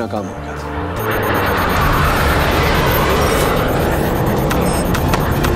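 A jet plane roars loudly overhead.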